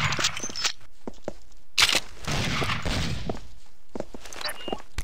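Footsteps tap quickly on hard stone.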